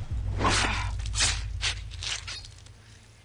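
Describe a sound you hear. A knife slices wetly through an animal hide.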